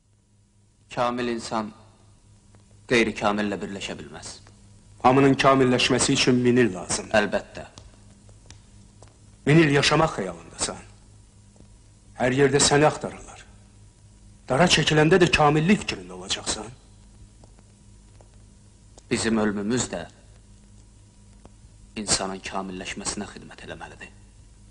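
Two men talk calmly in turn, close by, in a room that echoes slightly.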